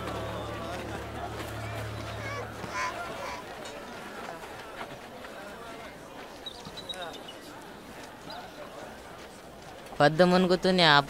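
A crowd murmurs in the distance outdoors.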